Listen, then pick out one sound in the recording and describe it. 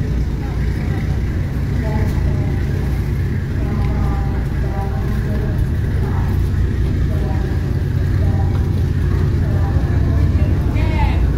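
Water churns and splashes against a hull.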